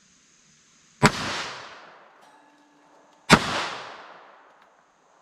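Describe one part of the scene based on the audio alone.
A pistol fires two loud shots that echo and fade.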